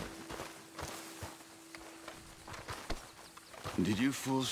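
Footsteps crunch through grass and gravel.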